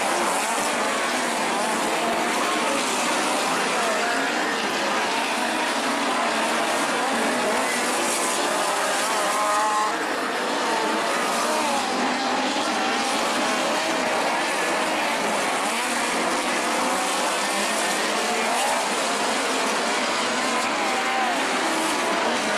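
Race car engines roar around a dirt track.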